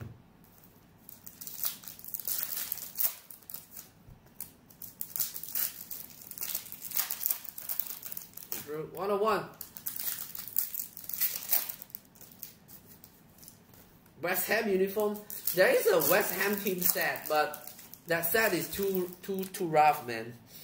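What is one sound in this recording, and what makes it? Plastic wrappers crinkle and rustle up close.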